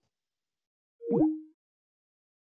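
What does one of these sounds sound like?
A call tone chimes briefly.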